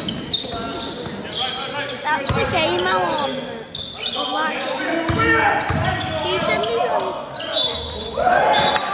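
Young men shout to each other across the court.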